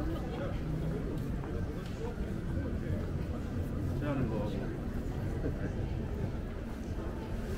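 Footsteps tap on pavement as people walk.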